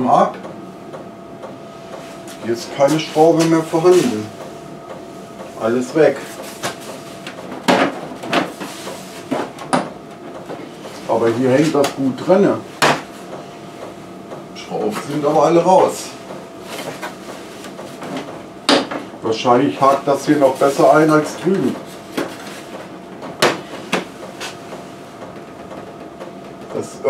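Plastic panels click and knock under a man's hands.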